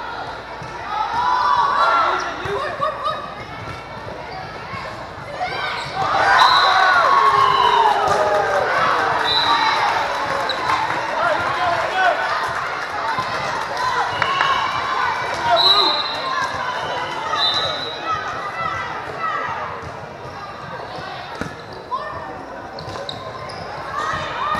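Young women shout and cheer across a large echoing gym.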